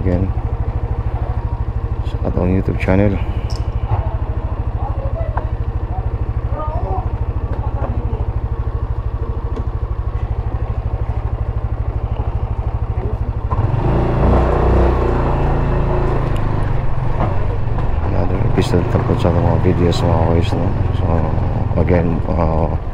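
A motorcycle engine idles and putters steadily close by.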